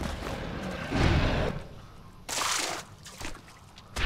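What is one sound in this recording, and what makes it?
A large creature groans as it falls.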